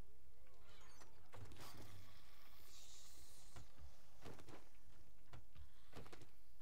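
Short game interface clicks sound as items are taken.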